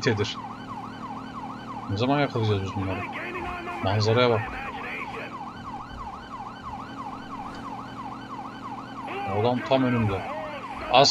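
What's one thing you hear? A police siren wails rapidly up and down.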